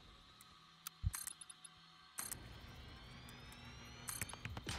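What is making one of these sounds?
Building blocks snap into place with short sharp clicks.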